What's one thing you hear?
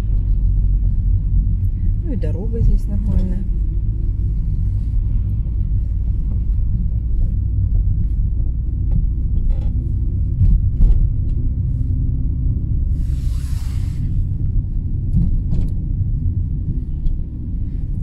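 A car engine rumbles steadily from inside the car as it drives.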